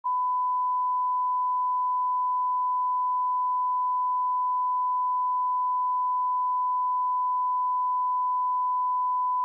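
A steady, high-pitched test tone sounds without a break.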